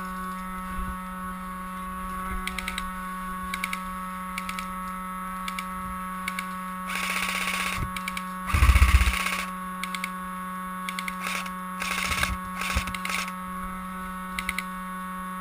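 A gun fires short bursts of sharp pops.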